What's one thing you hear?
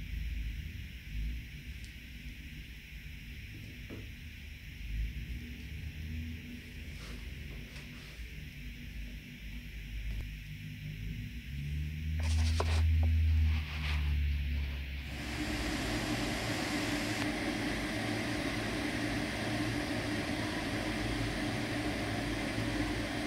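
A brush scrapes softly across canvas.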